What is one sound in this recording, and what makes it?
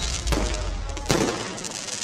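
Fireworks burst with loud bangs.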